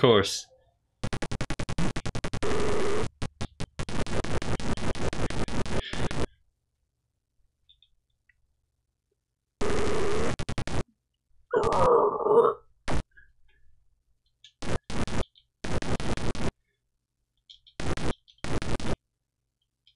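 Retro video game sound effects buzz and beep in rapid bursts.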